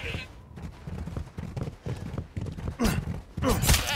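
A knife slashes and stabs into flesh.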